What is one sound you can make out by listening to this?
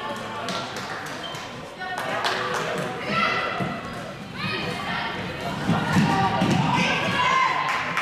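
Plastic sticks clack against a ball and each other.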